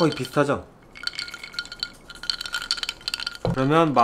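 Ice cubes clink in glasses.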